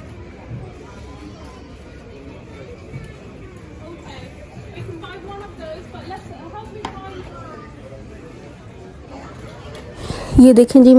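Shoppers murmur in the background.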